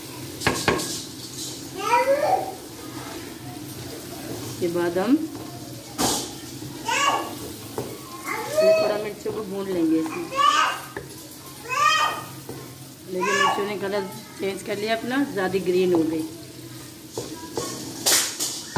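A spatula scrapes and knocks against a metal pan while stirring food.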